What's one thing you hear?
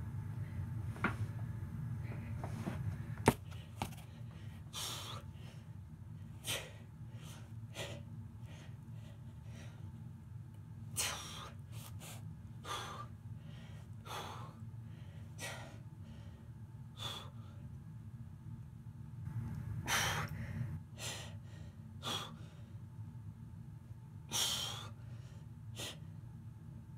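A young man breathes out hard in sharp bursts close by.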